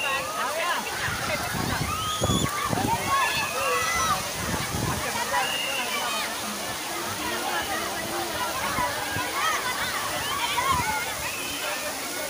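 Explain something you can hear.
Water pours and splashes steadily from a height.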